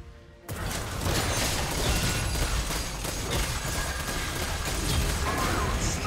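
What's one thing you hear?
Game spell effects crackle and blast in a busy fight.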